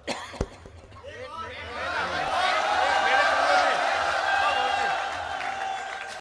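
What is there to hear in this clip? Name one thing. An elderly man sings loudly into a microphone.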